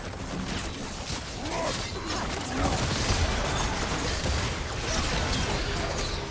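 Video game spells blast and crackle during a fight.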